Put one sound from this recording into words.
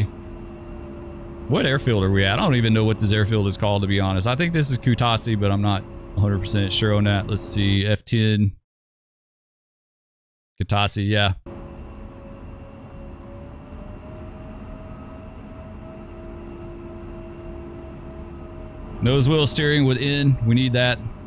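A jet engine idles with a steady low whine.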